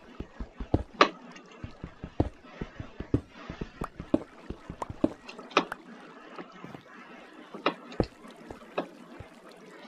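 Stone blocks break with short crunching pops.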